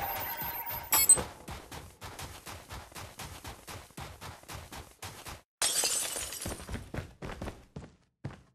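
Footsteps run quickly over snow and then a wooden floor.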